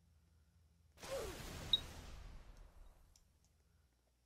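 A fire flares up with a whoosh.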